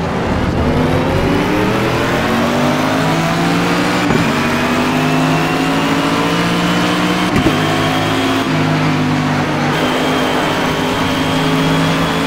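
A racing car engine roars loudly, rising in pitch and dropping at each gear change.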